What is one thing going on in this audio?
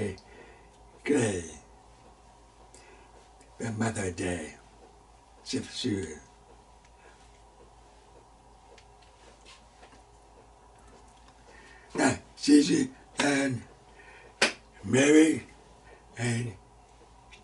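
An elderly man speaks calmly and close to a microphone, with long pauses.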